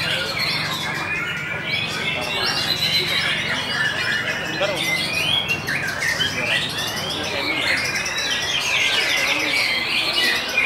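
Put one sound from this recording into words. A songbird sings a rich, warbling song close by.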